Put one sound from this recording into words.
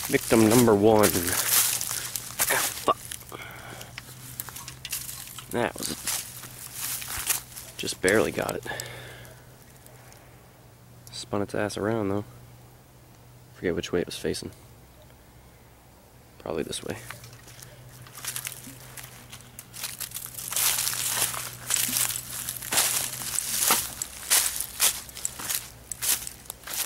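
Footsteps crunch through dry leaves outdoors.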